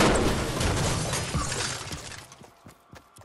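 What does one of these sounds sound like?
A pickaxe clangs against a car's metal body.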